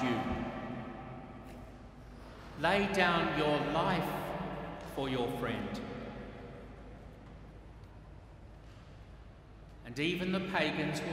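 An elderly man chants slowly through a microphone, echoing through a large hall.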